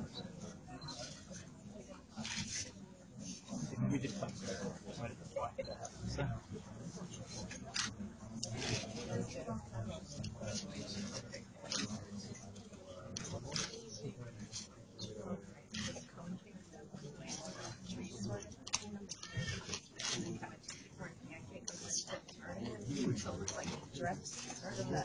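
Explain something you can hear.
A crowd of people murmurs quietly nearby.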